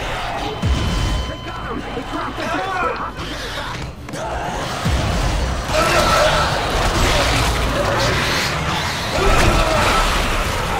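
A monstrous creature snarls and shrieks close by.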